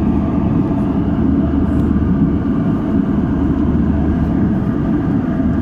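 Jet engines roar steadily with a low, constant rumble inside an airliner cabin.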